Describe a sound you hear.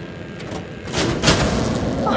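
A metal latch rattles and clanks.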